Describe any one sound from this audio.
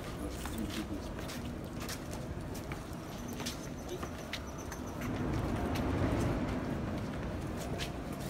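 Footsteps scuff on stone steps.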